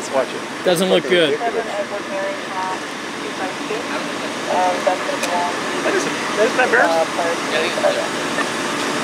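Several men talk nearby, outdoors.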